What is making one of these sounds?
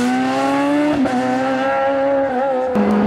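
A car's gearbox shifts with a brief dip in the engine note.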